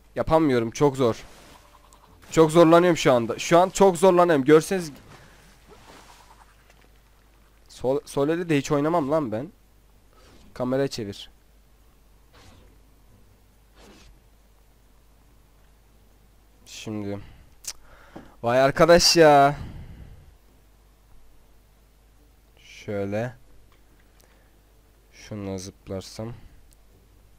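A young man talks with animation into a close microphone, in bursts with pauses.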